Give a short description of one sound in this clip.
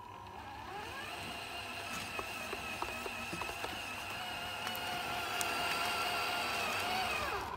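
A small electric motor whines steadily, rising then falling in pitch.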